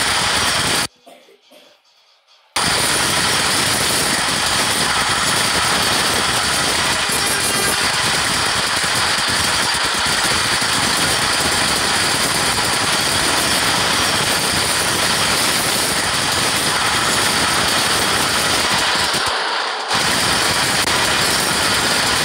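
A subway train rumbles along the tracks at speed.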